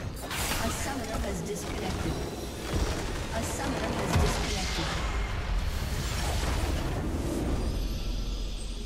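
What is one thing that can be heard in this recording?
Game spell effects crash and whoosh loudly.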